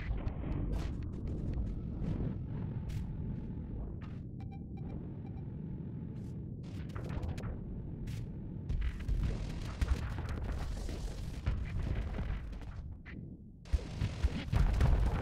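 Spaceship weapons fire in rapid bursts.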